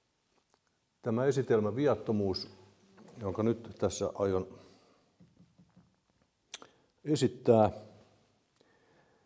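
An older man speaks calmly into a microphone, with pauses, in a room with a slight echo.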